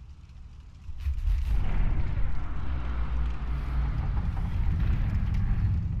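A heavy stone door grinds and rumbles open.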